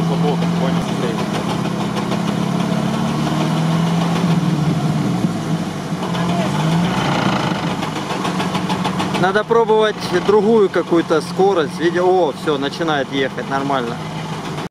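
Water splashes and churns around a vehicle's wheels.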